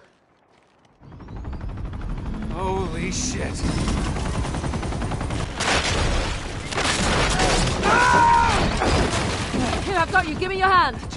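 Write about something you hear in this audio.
A helicopter roars close by with thudding rotor blades.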